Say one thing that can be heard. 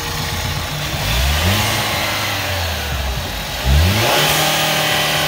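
A car engine revs up briefly, twice.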